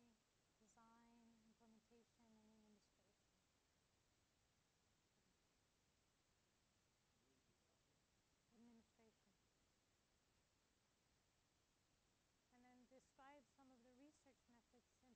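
A woman speaks calmly at a distance in a room with some echo, pausing between phrases.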